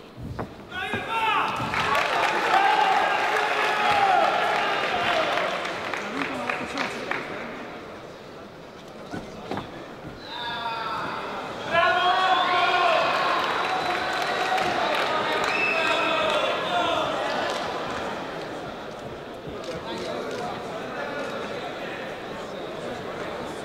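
A crowd cheers and applauds in a large echoing hall.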